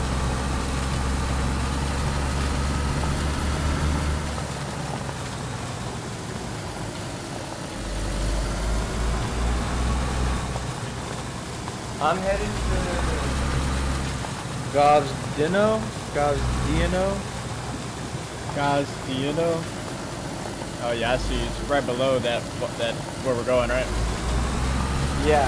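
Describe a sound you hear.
Tyres crunch over gravel.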